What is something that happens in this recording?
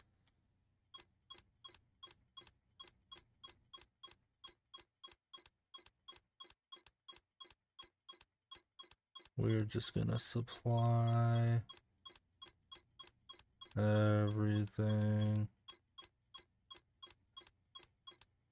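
Short electronic ticks sound rapidly as a menu cursor moves from item to item.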